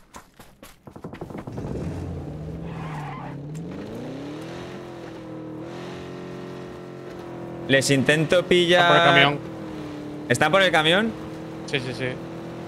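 A car engine hums steadily and rises in pitch.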